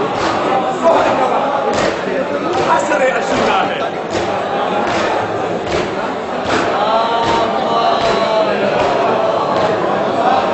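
A crowd of men chants loudly together outdoors.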